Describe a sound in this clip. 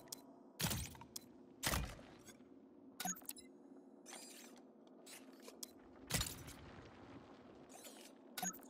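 Short electronic whooshes and clicks sound as a small robot's parts are swapped.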